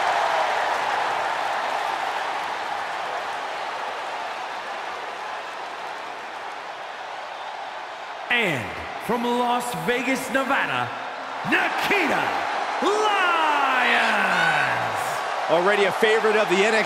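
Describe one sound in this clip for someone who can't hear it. A large crowd cheers in an echoing arena.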